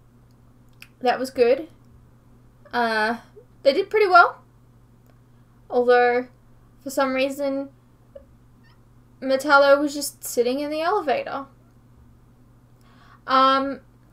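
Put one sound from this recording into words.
A young woman talks in short bursts, close to a microphone, with animation.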